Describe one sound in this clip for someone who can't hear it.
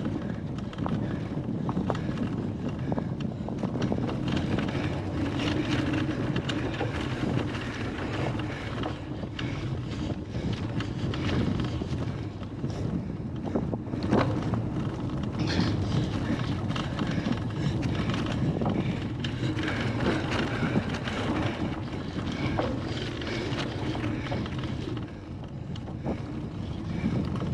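A bicycle chain and frame rattle over bumps.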